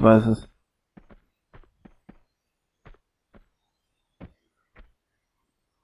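Light footsteps tap on wooden planks.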